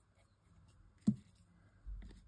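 A plastic cap clicks onto a glue bottle.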